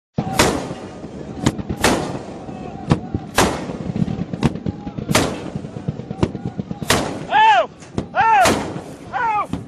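A heavy gun fires loud booming shots outdoors.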